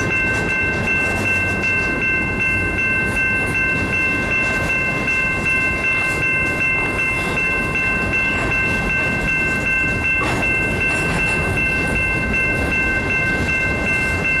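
A freight train rumbles steadily past close by.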